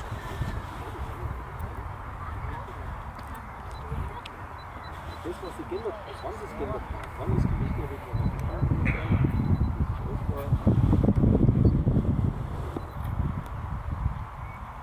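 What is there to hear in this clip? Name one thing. Wind buffets the microphone outdoors, gusting louder at times.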